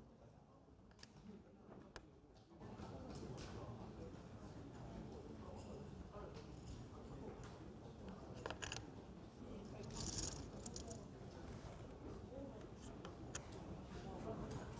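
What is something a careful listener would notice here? A plastic game piece clicks down on a board.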